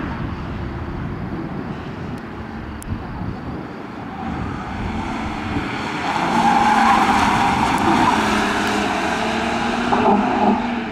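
A car engine revs hard as the car speeds past.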